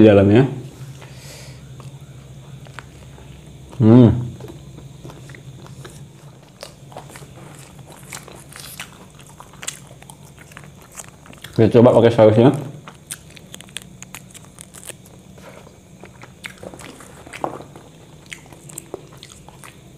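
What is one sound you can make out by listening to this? A young man bites into a burger and chews close to a microphone.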